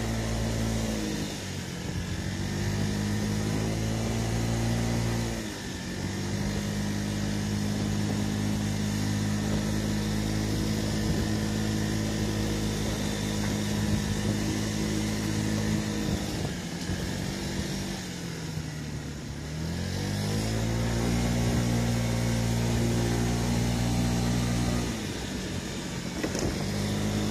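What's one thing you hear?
A scooter engine hums steadily close by, its pitch dropping and rising as the rider slows for bends and speeds up again.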